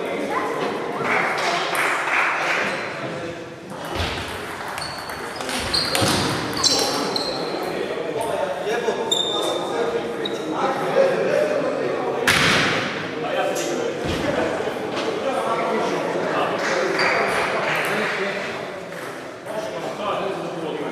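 Ping-pong balls click on tables and paddles.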